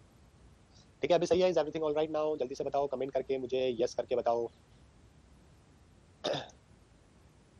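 A young man speaks clearly into a close microphone, explaining.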